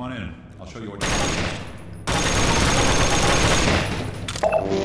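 Gunshots crack loudly.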